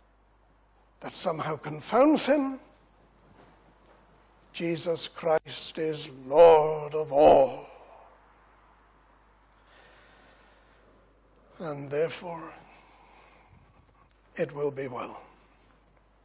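An older man speaks slowly and emphatically into a microphone, with pauses between phrases.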